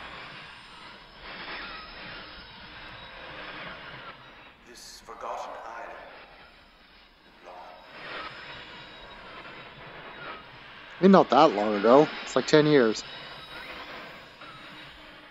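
Static hisses and crackles.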